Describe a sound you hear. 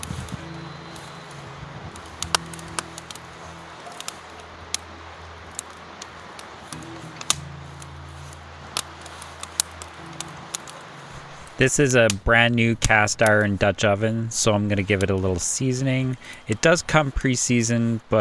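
A wood fire crackles and pops close by.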